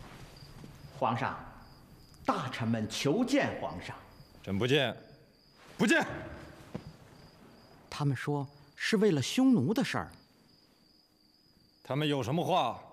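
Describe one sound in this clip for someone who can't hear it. A man speaks calmly and gravely, close by.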